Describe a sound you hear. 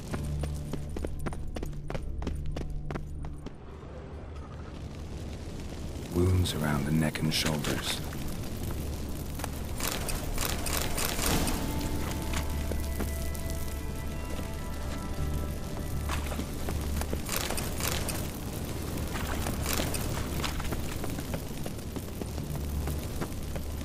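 Footsteps tread steadily on a hard stone floor.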